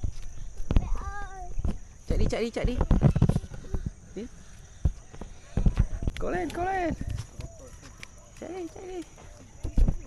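A young child's high voice calls out nearby.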